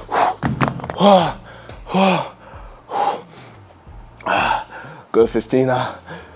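A man speaks close by with animation, in short bursts.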